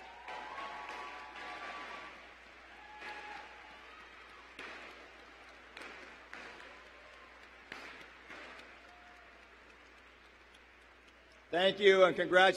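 A crowd cheers and applauds in a large hall, heard from afar.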